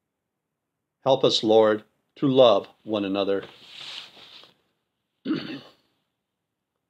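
An older man speaks calmly and close to the microphone, in short phrases with pauses.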